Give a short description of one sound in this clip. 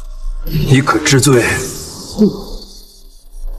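A young man speaks sternly and close by.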